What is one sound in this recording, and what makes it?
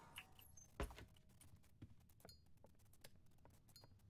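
A lighter clicks on.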